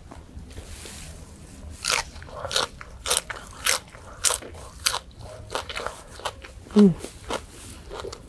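A young woman chews and smacks her lips loudly close to a microphone.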